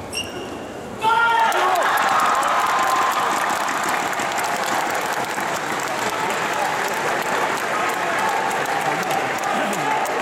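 A large crowd cheers and roars loudly in a big echoing hall.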